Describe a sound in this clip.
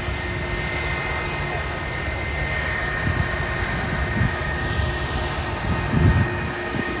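A jet engine whines with a high steady tone.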